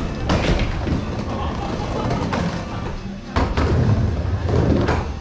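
Skateboard wheels roll and rumble over a wooden ramp outdoors.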